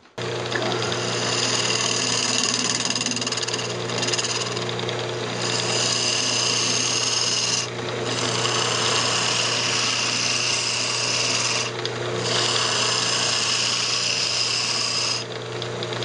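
A chisel scrapes against spinning wood in bursts.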